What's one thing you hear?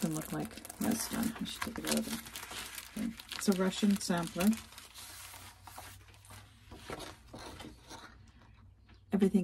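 A plastic sleeve crinkles and rustles in someone's hands.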